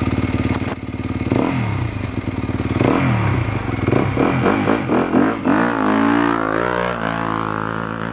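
A trail bike passes close by, revving.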